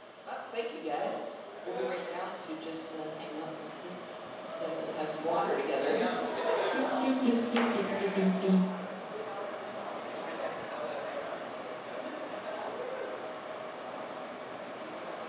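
Drums are tapped and struck now and then.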